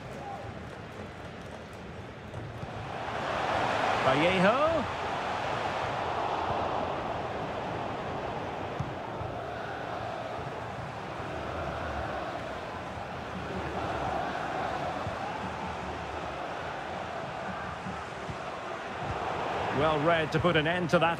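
A large stadium crowd roars and cheers steadily, swelling louder at times.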